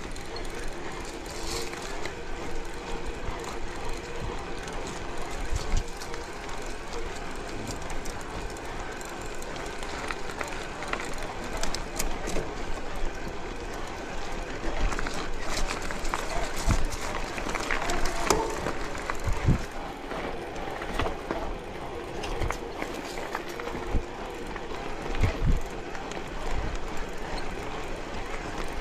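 A bicycle frame rattles and knocks over bumps.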